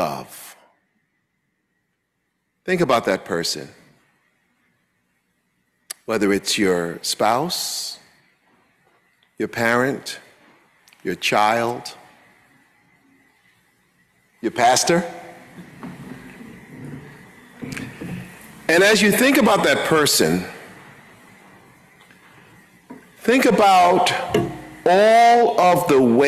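A man preaches with animation into a microphone, in bursts separated by pauses, in an echoing hall.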